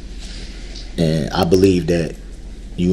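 An adult man speaks in short, emphatic bursts.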